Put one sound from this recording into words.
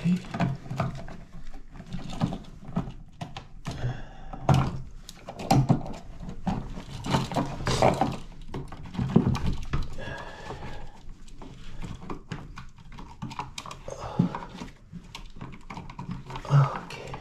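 Small plastic parts click and tap.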